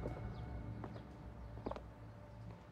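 Footsteps tap on hard paving.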